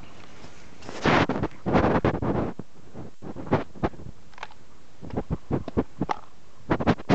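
Footsteps squelch and crunch through mud.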